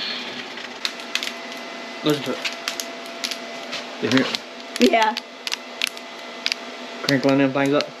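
A foil bag crinkles in hands.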